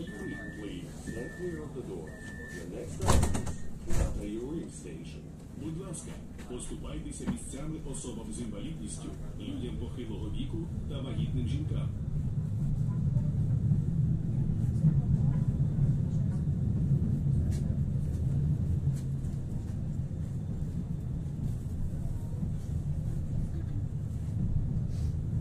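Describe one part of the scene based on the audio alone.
A train rumbles along the tracks, growing louder as it picks up speed.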